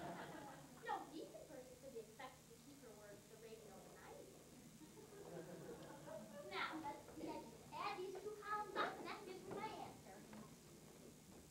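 A young girl speaks with animation on a stage, heard from far back in an audience.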